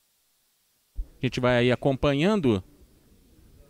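A man speaks loudly to the room.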